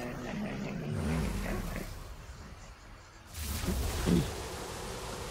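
A magical whoosh sweeps up as something is pulled through a portal.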